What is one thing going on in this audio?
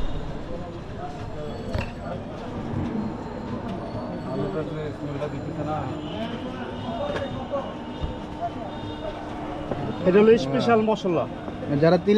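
Dry puffed rice rustles as a hand mixes it in a metal bowl.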